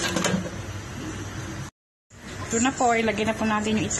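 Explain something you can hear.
A glass lid clinks against a metal pot.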